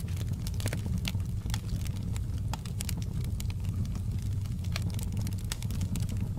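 Burning logs crackle and pop.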